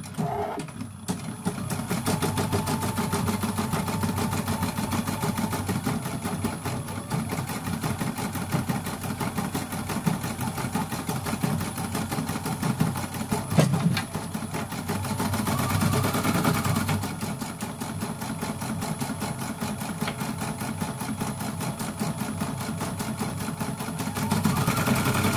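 An embroidery machine runs with a fast, steady rattling hum.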